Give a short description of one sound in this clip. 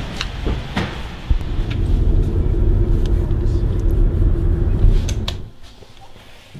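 Traffic rumbles past on a street.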